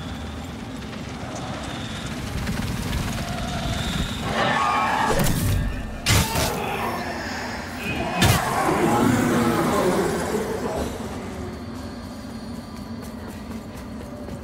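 Footsteps crunch on dry grass and undergrowth.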